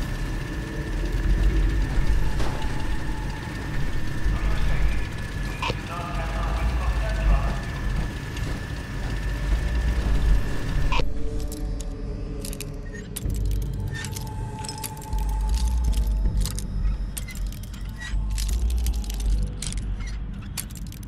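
A heavy low rumble hums steadily.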